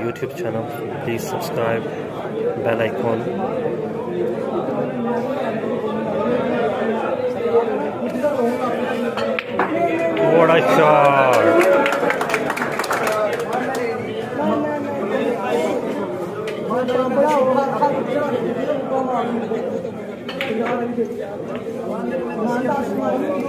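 A crowd of men murmurs and chats.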